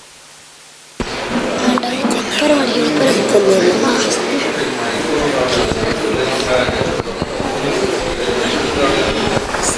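A young boy speaks into a handheld microphone.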